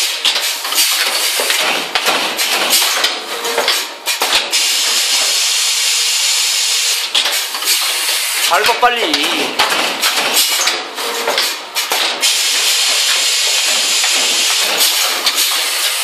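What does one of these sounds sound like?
A machine whirs and hisses steadily.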